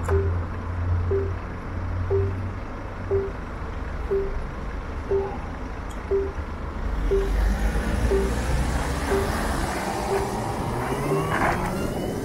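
A turn signal beeps steadily at an even pace.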